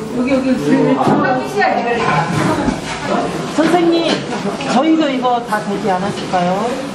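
Men and women chatter together close by.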